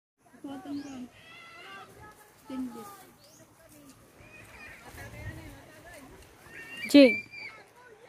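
A young girl talks close by in a casual, lively voice.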